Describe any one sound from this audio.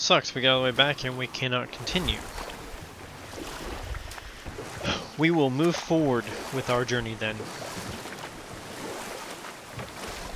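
Water laps and splashes around a rowing boat.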